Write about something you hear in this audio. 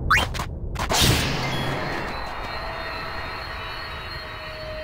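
A magical shimmer rings out and fades.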